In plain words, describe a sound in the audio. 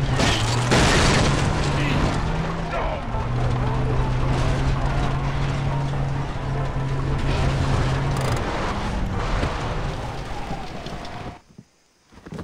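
A vehicle engine hums steadily as it drives over a bumpy dirt track.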